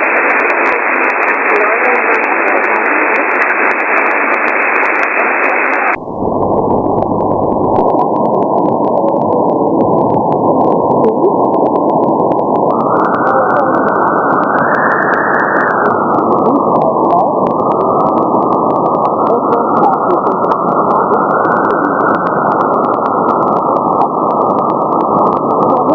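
Radio static hisses and crackles steadily from a receiver, with a sharp change in tone partway through.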